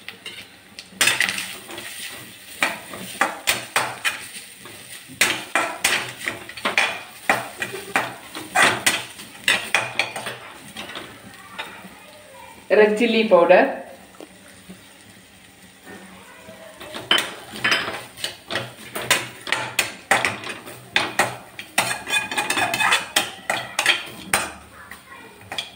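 A metal spatula scrapes and clatters against a metal wok.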